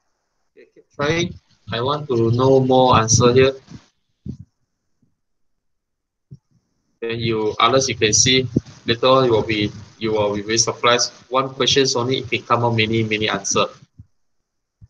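A man speaks calmly into a close microphone over an online call, in short bursts with pauses.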